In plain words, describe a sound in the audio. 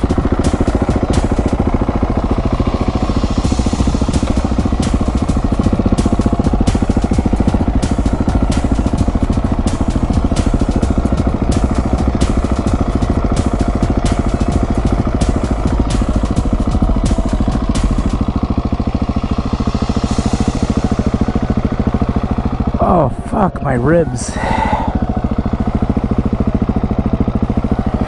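A dirt bike engine runs steadily nearby.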